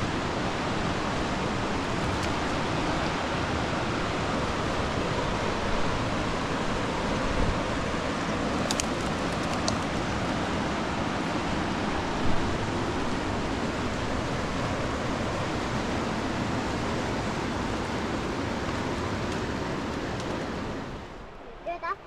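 A river rushes loudly over rocks nearby.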